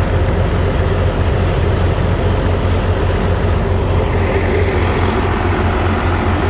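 A diesel engine chugs loudly and steadily nearby.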